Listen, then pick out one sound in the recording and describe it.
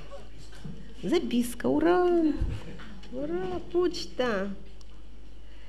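A middle-aged woman sings into a microphone.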